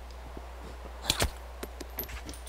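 A silenced rifle fires a few quick shots.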